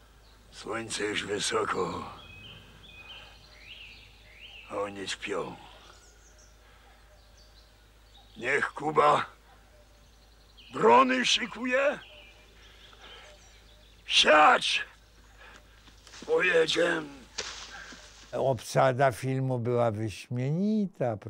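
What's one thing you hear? An elderly man speaks loudly and with strong emotion, in short bursts with pauses between them.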